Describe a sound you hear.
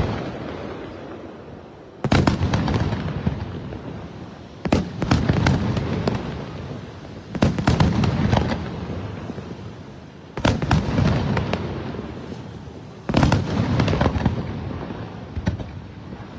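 Fireworks crackle and pop after each boom.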